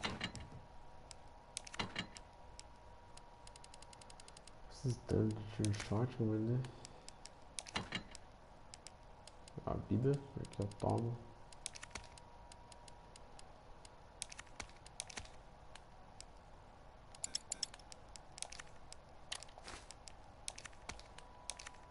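Short soft menu clicks tick again and again.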